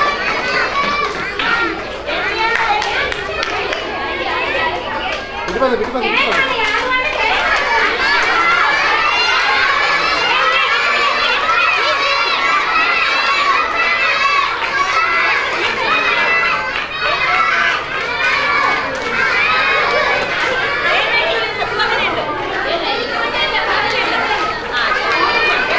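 A crowd of children chatters and shouts in a large echoing hall.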